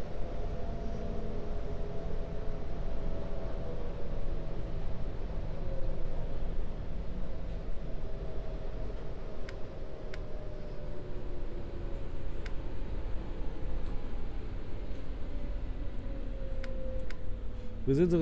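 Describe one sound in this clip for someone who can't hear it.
An electric motor whines, slowly falling in pitch as a train slows down.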